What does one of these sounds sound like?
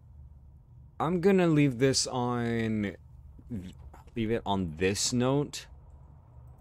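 A young man speaks with animation close to a headset microphone.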